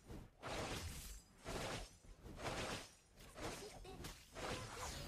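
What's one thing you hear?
Spell blasts and sword hits from a video game burst out again and again.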